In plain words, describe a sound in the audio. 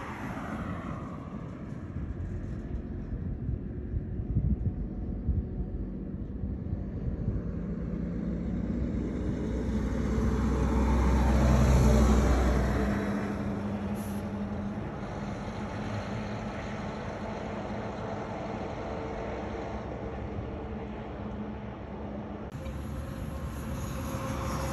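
A heavy truck engine rumbles as the truck approaches, grows louder as it passes close by, then fades away.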